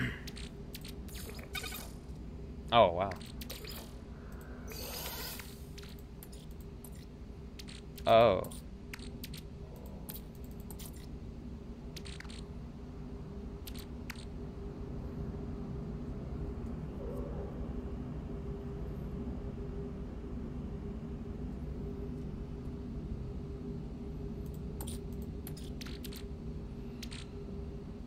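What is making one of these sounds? Interface clicks and beeps sound as menu items are selected.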